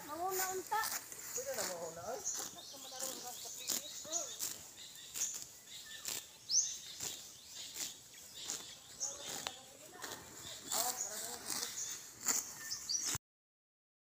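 A cow tears and chews grass.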